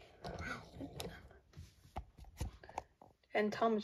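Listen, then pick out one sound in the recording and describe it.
Small wooden toy wheels click and rattle on a wooden track.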